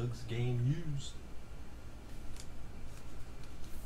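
Plastic sleeves and cards rustle and click as they are handled.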